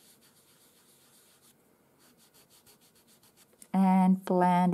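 A pastel pencil scratches softly on paper.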